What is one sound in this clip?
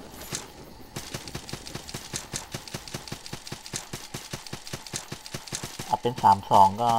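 Footsteps patter steadily on the ground.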